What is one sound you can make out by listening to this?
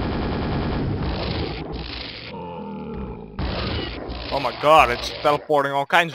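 An electric gun crackles and hums as it fires.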